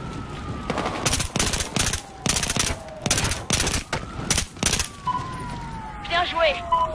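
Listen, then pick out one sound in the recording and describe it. A rifle fires rapid, loud shots.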